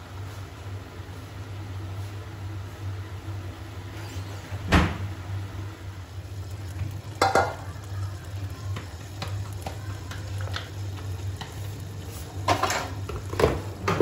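Vegetables sizzle gently in a pan.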